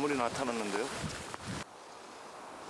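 A man speaks calmly, close by, outdoors.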